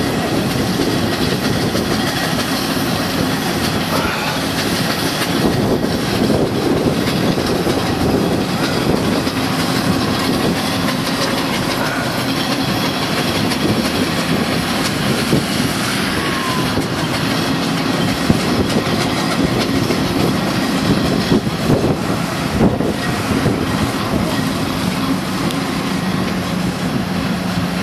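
Steam traction engines rumble and chug along the road.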